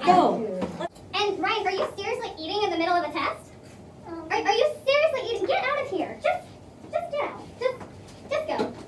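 A woman speaks calmly to a group.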